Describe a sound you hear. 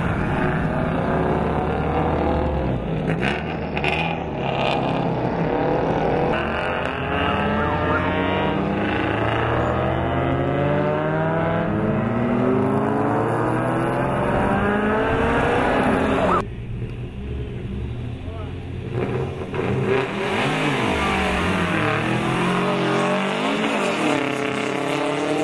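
A car engine revs loudly, rising and falling in pitch.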